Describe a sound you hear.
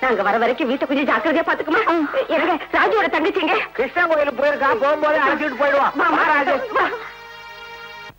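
A woman and a man argue loudly and with agitation.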